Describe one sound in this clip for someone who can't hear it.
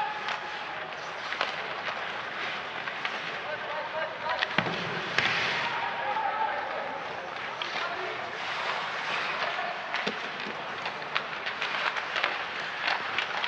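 Hockey sticks knock a puck with sharp clacks.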